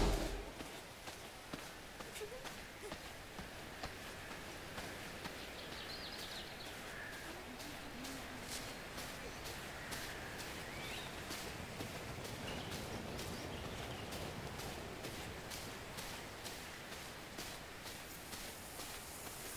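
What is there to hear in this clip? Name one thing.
Footsteps tread steadily along a dirt path.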